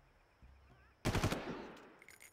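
A rifle fires a short burst.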